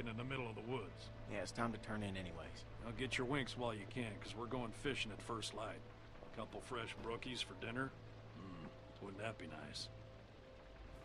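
A man speaks in a gruff, drawling voice.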